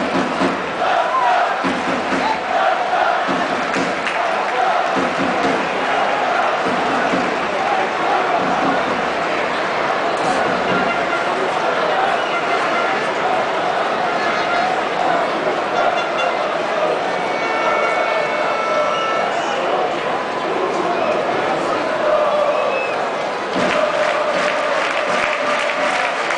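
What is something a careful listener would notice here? A large stadium crowd roars and chants steadily all around.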